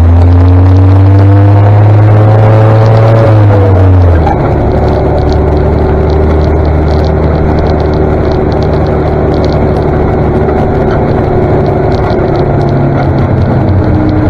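Tyres roll over a tarmac road.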